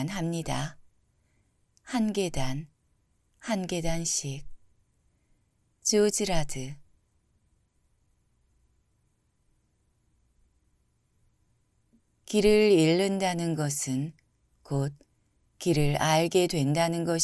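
A young man reads out calmly and closely into a microphone, with pauses.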